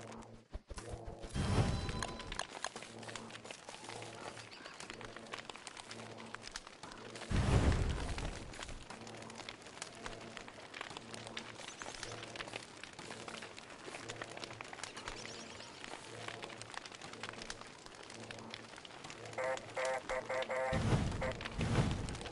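A campfire crackles and hisses.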